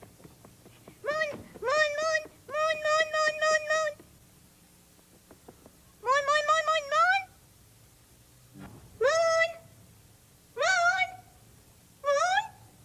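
A high, childlike voice sings loudly in short bursts.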